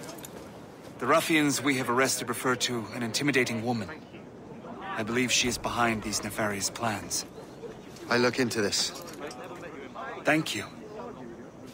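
An elderly man speaks calmly and gravely.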